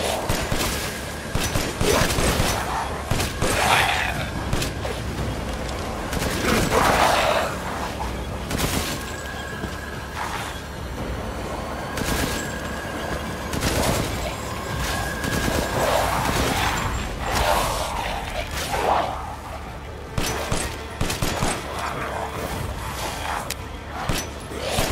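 A creature growls and snarls up close.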